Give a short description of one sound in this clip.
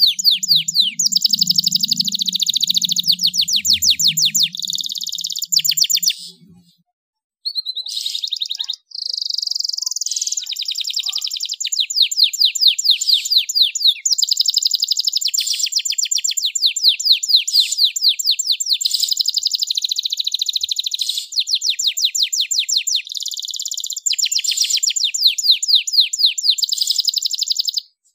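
A canary sings loudly and close by, with fast trills and rolling chirps.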